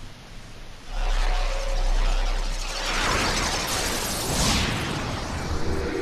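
A magical burst of sound swells and roars.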